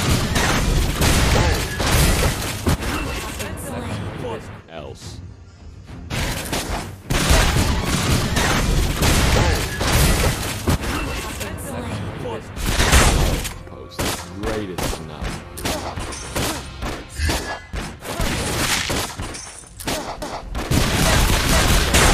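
Gunfire and blasts of a video game crackle rapidly.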